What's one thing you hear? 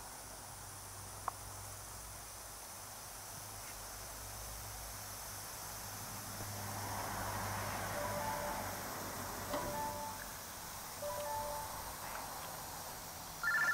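Lawn sprinklers hiss softly as they spray water.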